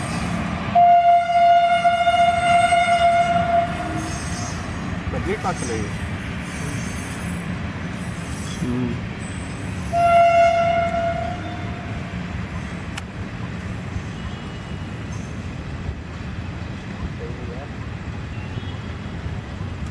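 A passing train rumbles and clatters steadily along the tracks.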